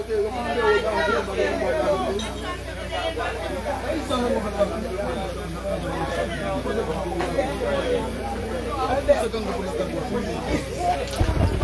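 A group of women and men sing together nearby.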